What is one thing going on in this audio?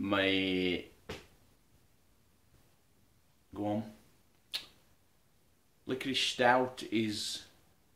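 A middle-aged man talks close up, in short bursts with pauses.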